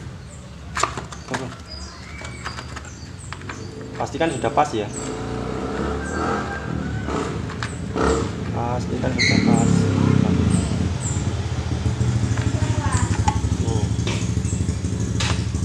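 A plastic chain guard rattles and knocks against a metal frame.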